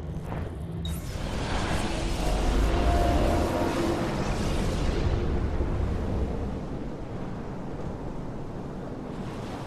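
Waves wash steadily onto a shore.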